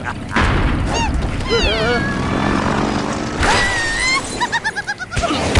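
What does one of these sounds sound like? A cartoon bird squawks as it is flung through the air.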